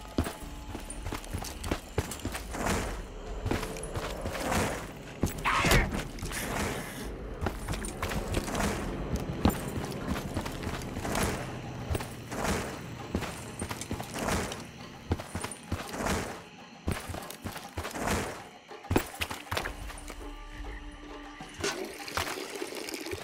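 Footsteps tread steadily over rough ground.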